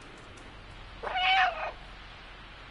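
A cat meows loudly once.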